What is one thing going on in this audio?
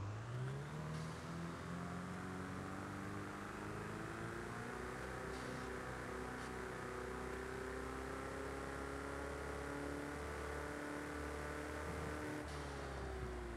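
A sports car engine roars steadily as the car speeds along.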